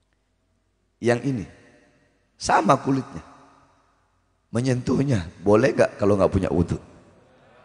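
A man speaks with animation into a microphone, his voice echoing through loudspeakers.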